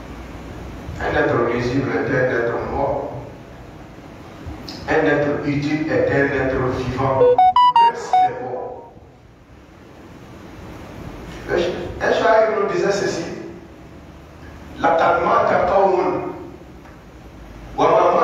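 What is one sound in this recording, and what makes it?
A man preaches loudly and with passion through a microphone in an echoing hall.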